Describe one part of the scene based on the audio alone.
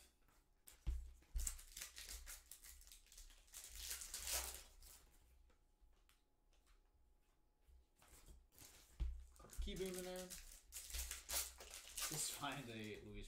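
Foil wrappers crinkle and tear.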